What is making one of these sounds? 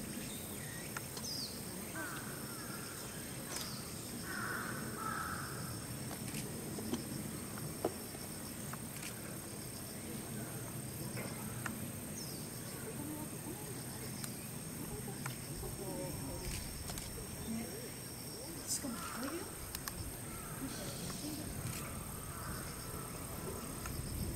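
Ropes creak and rub as an orangutan climbs along them.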